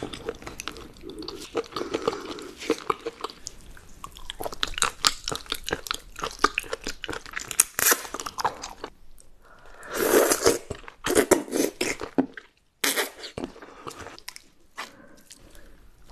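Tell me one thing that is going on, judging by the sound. Wet, slippery food squelches on a wooden board.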